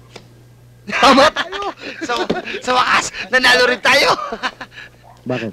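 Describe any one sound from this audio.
Several men laugh loudly together.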